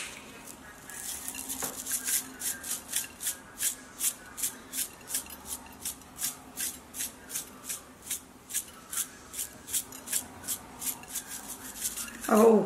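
A spice shaker rattles in quick, repeated shakes.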